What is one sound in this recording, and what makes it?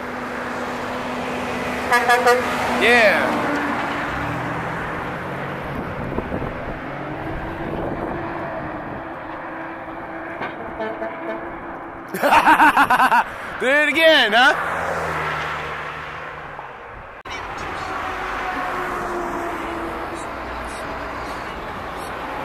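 Traffic hums steadily along the road.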